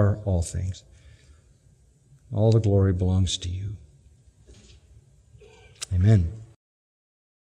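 An elderly man speaks slowly and earnestly into a microphone.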